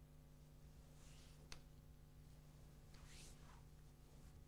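Stiff cloth rustles with quick arm movements.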